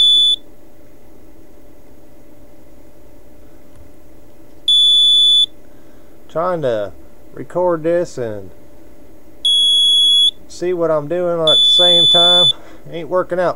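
An electronic device gives out a high, steady beep each time a button is pressed.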